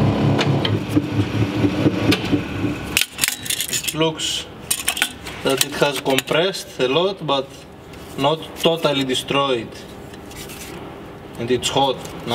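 A crushed metal speaker frame clinks and rattles as it is handled.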